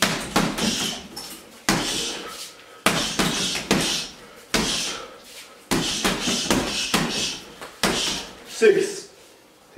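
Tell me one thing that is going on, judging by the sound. Boxing gloves thump hard against a heavy punching bag in quick bursts.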